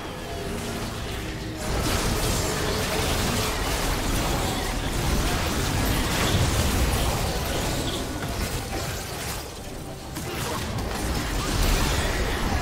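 Magic blasts and explosions crackle and boom in a fast, busy fight.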